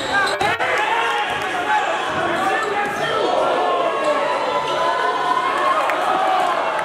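Sneakers squeak sharply on a gym floor, echoing in a large hall.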